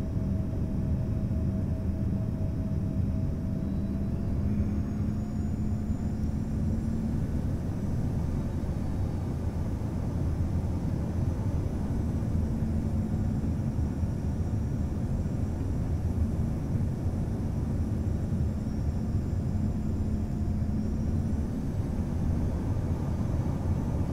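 Jet engines roar steadily inside an airplane cabin.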